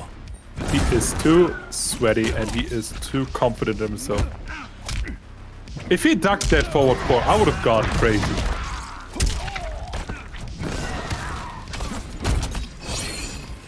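Punches and kicks land with heavy thuds in a fighting game.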